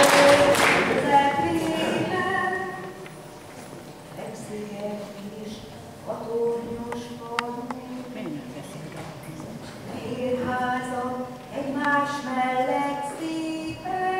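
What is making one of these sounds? An elderly woman sings solo into a microphone.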